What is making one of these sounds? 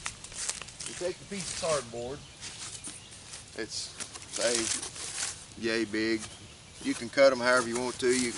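A man talks casually nearby, outdoors.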